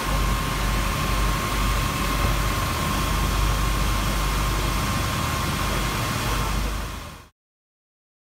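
Water jets spray and splash onto the water with a steady hissing rush.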